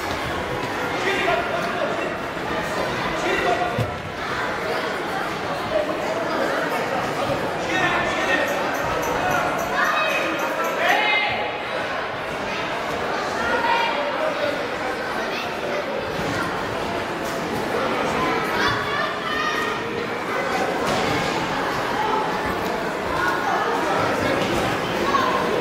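A ball thumps on a wooden floor.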